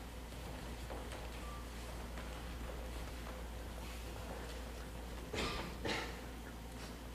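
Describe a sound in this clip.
Footsteps knock on a wooden stage in an echoing hall.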